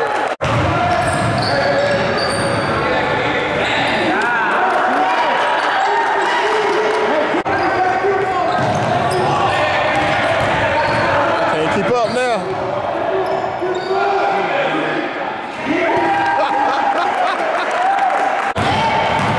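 Players and spectators call out and chatter in a large echoing gym.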